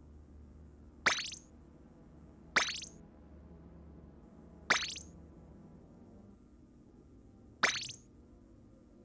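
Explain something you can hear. Short bright chimes ring out one at a time, a few seconds apart.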